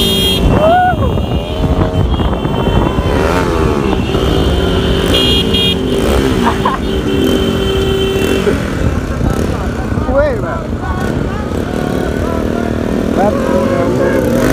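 Motorcycle engines rumble steadily close by.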